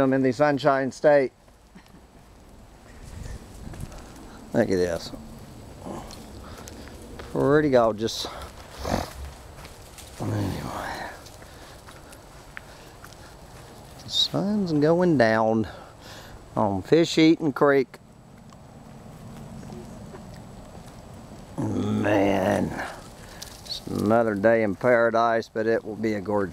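Footsteps crunch on dry leaves along a dirt path.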